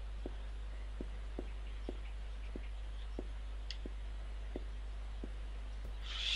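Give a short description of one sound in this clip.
Footsteps thud on a wooden floor at an even pace.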